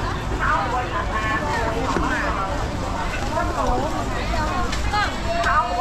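Women talk with animation close by.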